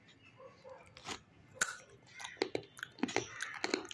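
A young girl crunches a snack.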